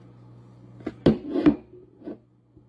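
A bowl knocks down onto a counter.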